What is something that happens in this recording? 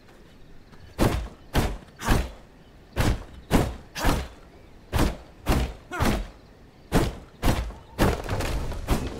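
Axe blows chop into a tree in quick, regular strokes.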